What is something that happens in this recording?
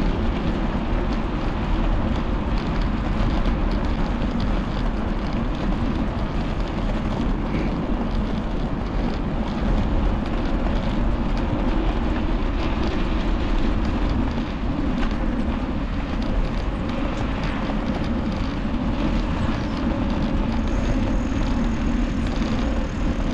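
Bicycle tyres hum on a paved path.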